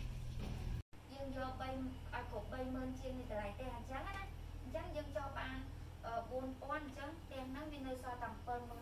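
A woman speaks calmly, explaining, close by.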